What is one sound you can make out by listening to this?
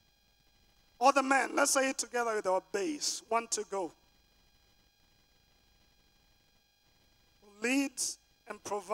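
A man preaches with animation into a microphone, heard through loudspeakers.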